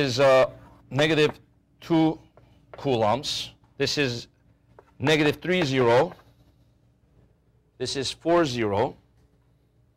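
A man speaks calmly, as if lecturing, close by.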